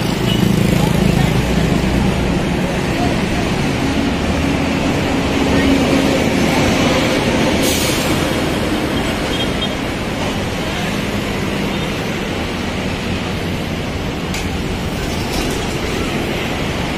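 A diesel truck engine runs close by.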